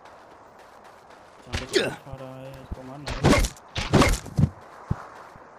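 A bat strikes with heavy thuds.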